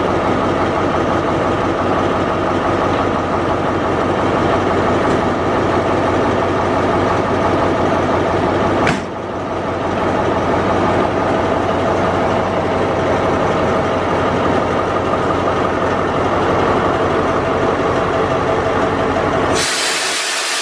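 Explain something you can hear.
A diesel locomotive idles close by with a steady throbbing hum.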